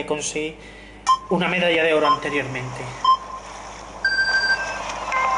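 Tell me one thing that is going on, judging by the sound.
Short electronic beeps count down.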